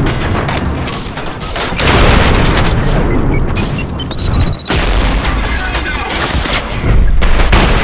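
Rapid gunfire rattles loudly and without pause.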